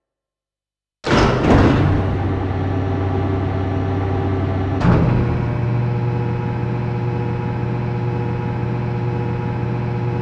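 A heavy lift machine hums and rumbles steadily.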